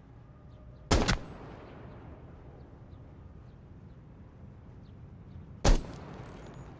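A rifle fires single loud shots.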